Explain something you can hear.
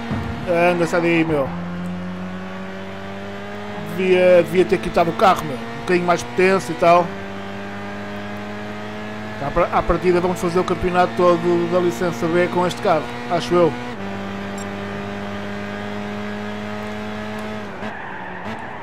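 A race car engine roars steadily, rising in pitch as it speeds up and shifting up through the gears.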